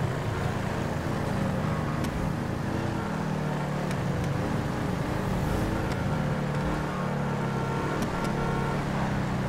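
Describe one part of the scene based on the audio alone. Car tyres squeal while skidding.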